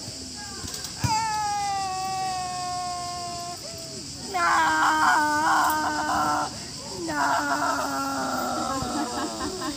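A woman sings in a clear voice nearby, outdoors.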